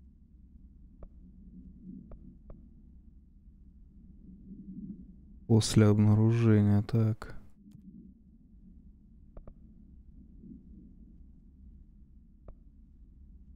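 Soft clicks tick now and then as menu items change.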